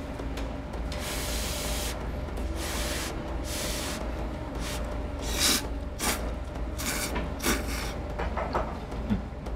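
A man loudly slurps noodles.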